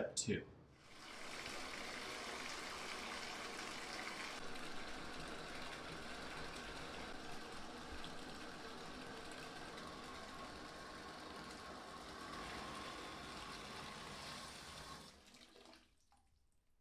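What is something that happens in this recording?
Water from a tap pours steadily into a filling bathtub.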